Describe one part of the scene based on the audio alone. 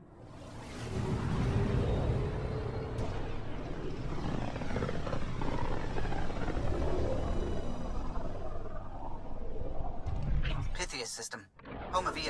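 A deep, rushing whoosh swells and then suddenly cuts off.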